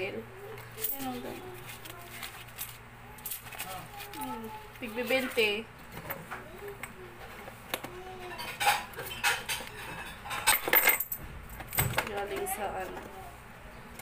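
A plastic toy rattles and clicks in a person's hands.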